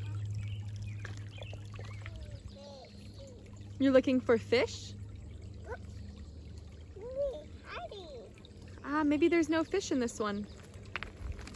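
Shallow water sloshes around a child's legs.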